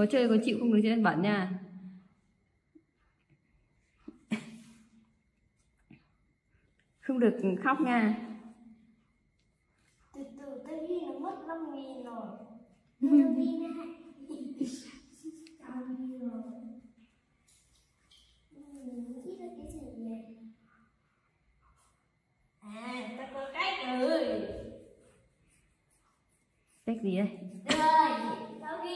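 A young boy talks and laughs with animation close by.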